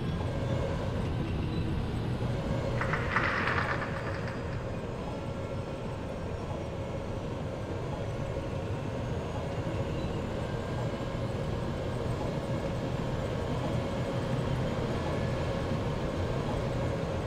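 A tank engine rumbles steadily as the vehicle drives.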